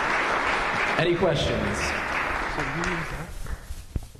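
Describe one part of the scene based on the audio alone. A young man speaks through a microphone in a large echoing room.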